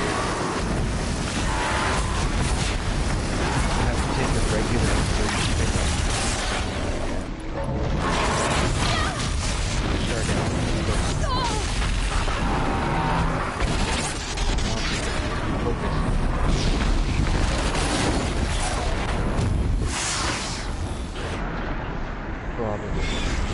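A machine creature stomps and crashes heavily.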